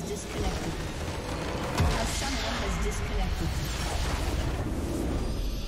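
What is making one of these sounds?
Game spell effects burst and crackle in a fight.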